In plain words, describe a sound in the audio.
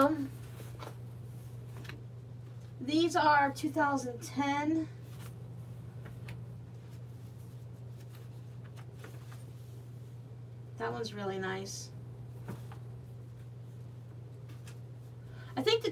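Magazine pages rustle and flip.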